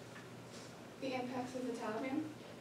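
A teenage girl speaks calmly, presenting to a room.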